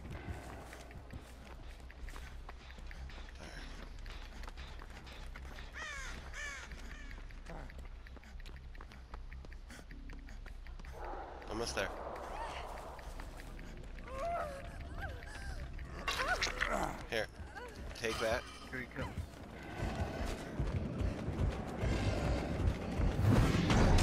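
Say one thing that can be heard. Footsteps run quickly over hard ground and grass.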